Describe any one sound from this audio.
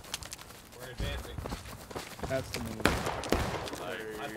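Rifle shots crack and boom nearby, several times.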